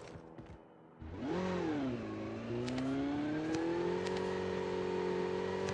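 A motorcycle engine revs up and accelerates.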